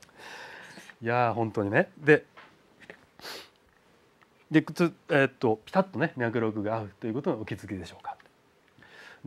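A middle-aged man speaks calmly through a small clip-on microphone.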